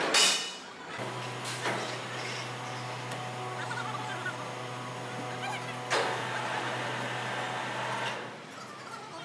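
An electric crane hoist hums steadily.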